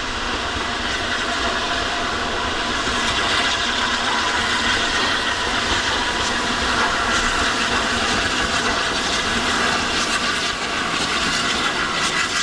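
A steam locomotive chuffs steadily as it approaches, growing louder.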